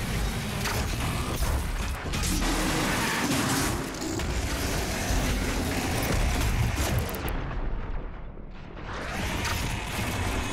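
Electric weapons crackle and zap in rapid bursts.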